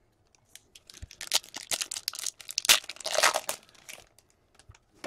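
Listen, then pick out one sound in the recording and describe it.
A plastic wrapper crinkles and tears.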